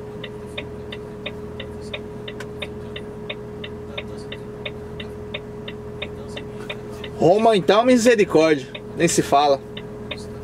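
A vehicle's engine idles with a low steady hum.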